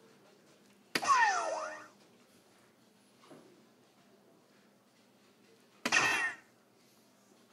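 An electronic dartboard plays a short, loud, chiming sound effect after a hit.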